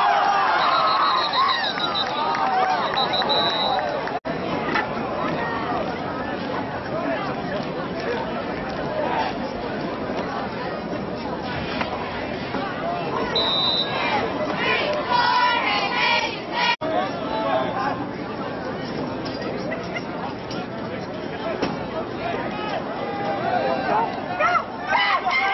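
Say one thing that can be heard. A crowd of spectators chatters and cheers nearby outdoors.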